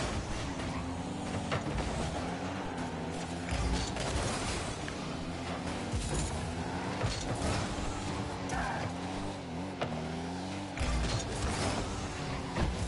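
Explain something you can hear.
Video game car engines hum and whoosh as the cars boost.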